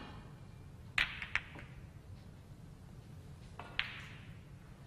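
Snooker balls clack against each other.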